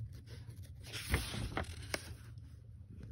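A paper page rustles as it turns.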